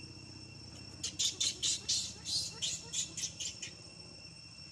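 A baby monkey squeals shrilly in rapid bursts, close by.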